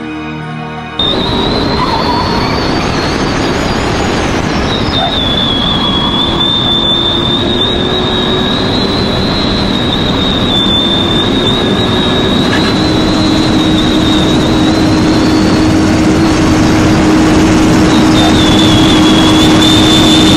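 Tyres roar on asphalt at high speed.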